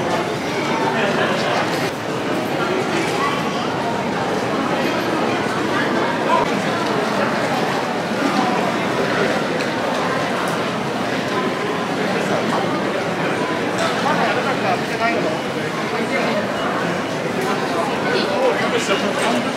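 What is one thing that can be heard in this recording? Many footsteps shuffle and tap on a hard floor.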